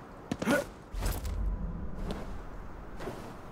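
A heavy thud lands after a drop.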